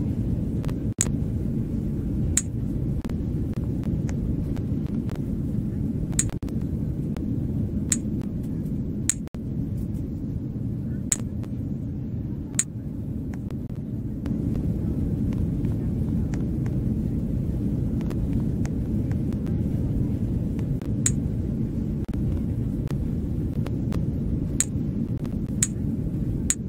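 Short, sharp clicks sound now and then.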